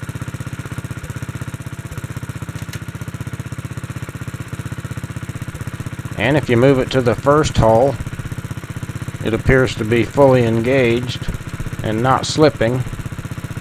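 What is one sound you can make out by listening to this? A small engine runs with a steady, rapid chugging throb.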